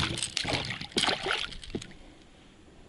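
A fish splashes and thrashes in the water close by.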